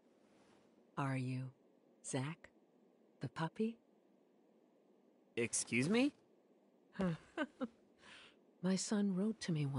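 An elderly woman speaks calmly and gently, close by.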